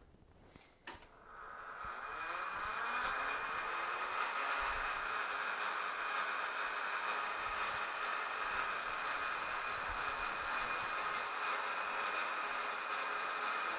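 A lathe spins up with a rising whine, then runs with a steady high hum.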